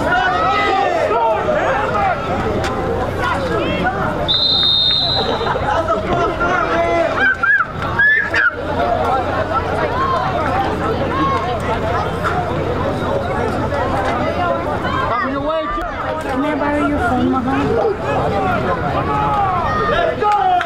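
Many young men shout and call out outdoors.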